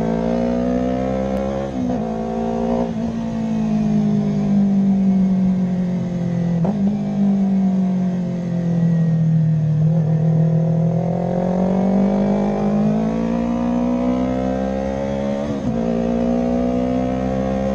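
A motorcycle engine hums loudly, its pitch falling and rising as the bike speeds up and slows down.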